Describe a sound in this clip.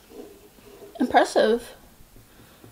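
A young woman speaks briefly and quietly, close to a microphone.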